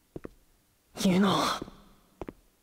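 A young man exclaims in surprise.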